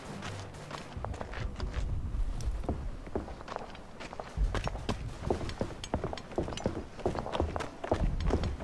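Footsteps thud quickly on dirt.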